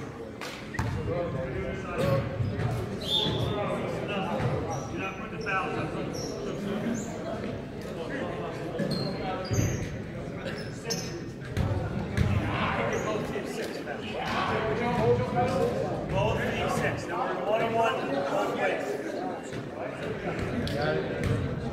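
Young men talk and call out across an echoing gym.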